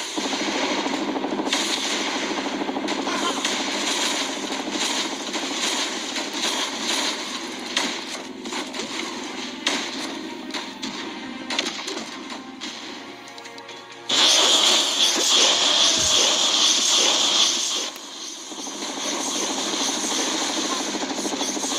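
Guns fire in rapid bursts during a battle.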